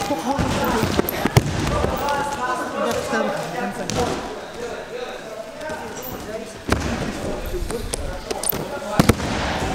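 Bodies thud onto a wrestling mat.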